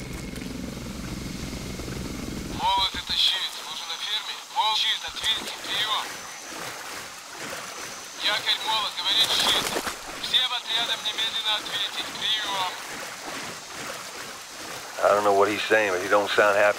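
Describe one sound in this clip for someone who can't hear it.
Water splashes as a man wades through it.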